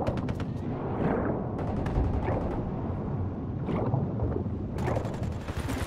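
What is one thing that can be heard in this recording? Water churns in a low, muffled rush underwater.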